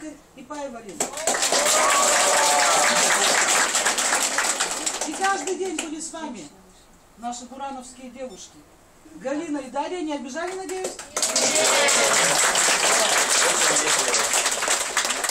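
A group of women clap their hands.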